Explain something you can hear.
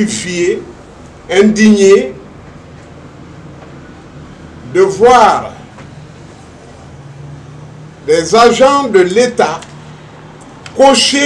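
A middle-aged man speaks slowly and deliberately into close microphones, with pauses between phrases.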